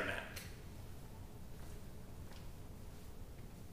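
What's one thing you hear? Footsteps tap on a hard floor as a man walks away.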